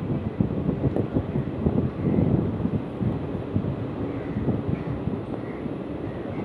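A train rumbles along the rails with rhythmic clacking.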